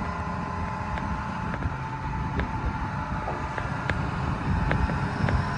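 A crawler excavator's diesel engine rumbles under load.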